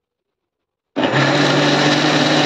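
An electric grinder whirs loudly.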